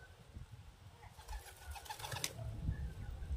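A pigeon's wings flap as it flies off.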